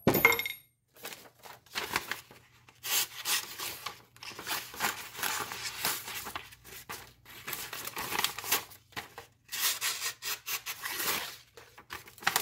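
A knife blade slices through paper with a crisp rustle.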